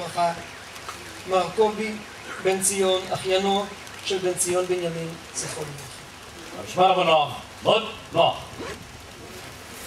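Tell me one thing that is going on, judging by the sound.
A man speaks solemnly through a loudspeaker outdoors.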